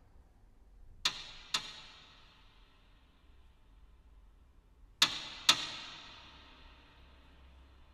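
A piano sounds sharp, bright struck notes in pairs that ring out and slowly fade.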